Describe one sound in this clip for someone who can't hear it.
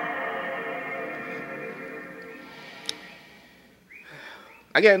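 A deep, shimmering startup chime plays through a television speaker and slowly fades.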